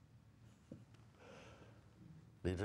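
An older man chuckles softly.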